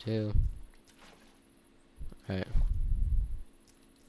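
Water sloshes as a bucket is filled.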